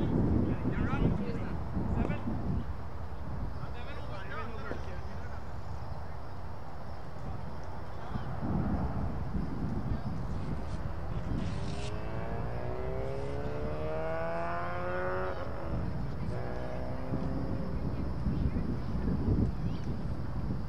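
Wind rumbles outdoors across the microphone.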